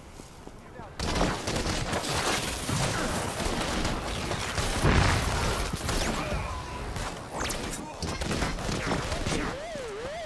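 Electric energy crackles and hums.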